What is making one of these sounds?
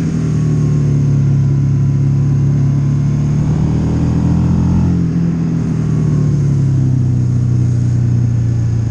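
A motorcycle engine hums steadily, rising and falling slightly in pitch.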